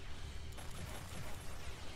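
A sword slashes through the air with a sharp swish.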